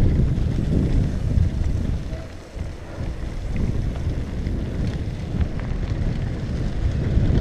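Wind rumbles loudly past a helmet.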